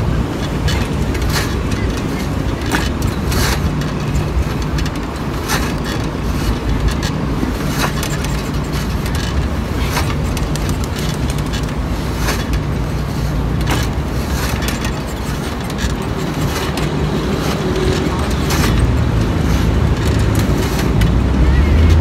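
A metal weight machine clanks and creaks in a steady rhythm.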